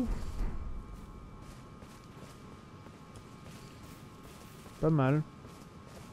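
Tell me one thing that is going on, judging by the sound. Footsteps crunch through grass.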